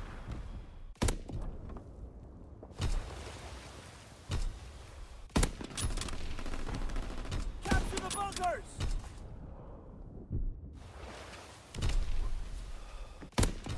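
Sniper rifle shots crack loudly, a few seconds apart, each followed by a short echo.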